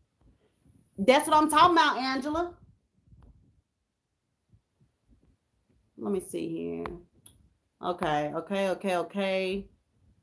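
A young woman talks calmly and close up, in short bursts with pauses.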